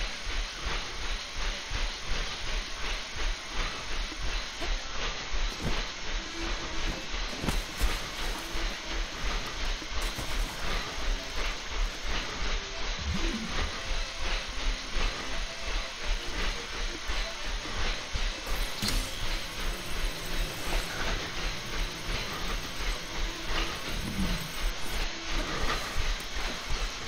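Feet pound steadily and quickly on a running treadmill.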